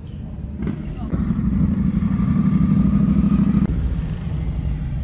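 A motorcycle engine rumbles loudly as it rides past close by.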